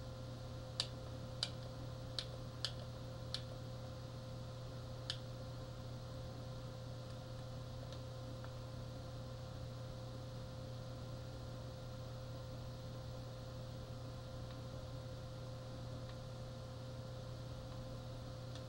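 A television set hums steadily.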